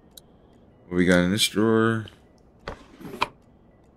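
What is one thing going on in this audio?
A drawer slides open with a clunk.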